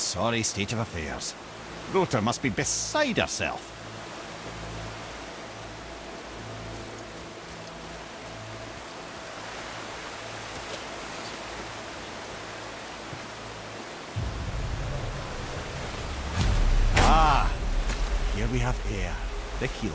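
Water pours down a waterfall steadily nearby.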